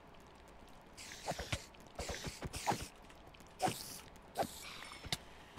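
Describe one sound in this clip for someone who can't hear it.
Sword strikes land with short, sharp hits and hissing bursts.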